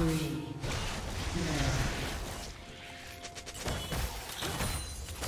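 Game sound effects whoosh and clink.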